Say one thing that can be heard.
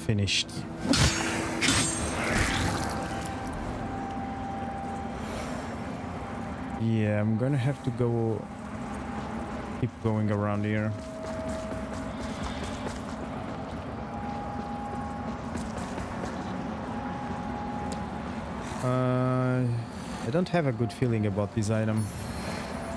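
Footsteps crunch over rough, wet ground.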